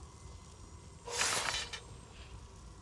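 A magical shimmering whoosh sounds briefly.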